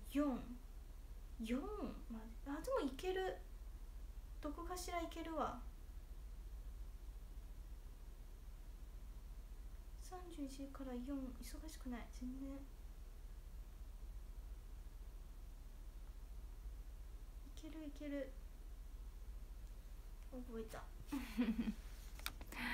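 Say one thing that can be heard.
A young woman speaks softly and calmly, close by, in short bursts.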